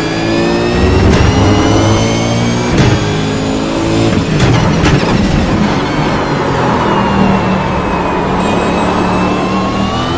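A racing car engine roars, revving up and dropping with each gear change.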